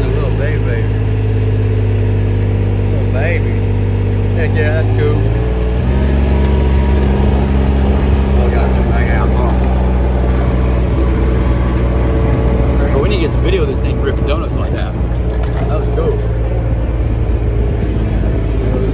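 A small vehicle engine runs close by with a steady low hum, then grows louder and rougher as the vehicle drives off.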